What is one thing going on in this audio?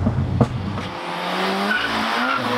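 A car drives past outdoors.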